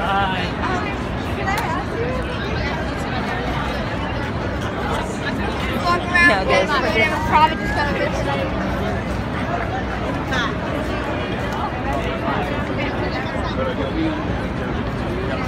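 A crowd murmurs and chatters all around outdoors.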